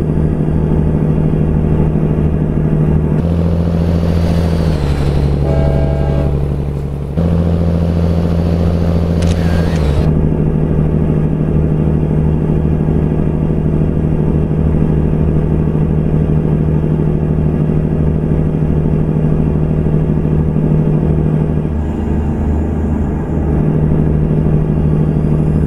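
A semi truck's diesel engine drones while cruising on a highway.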